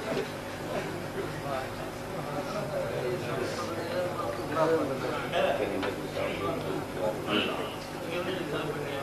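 An elderly man speaks with animation into a microphone, heard through loudspeakers.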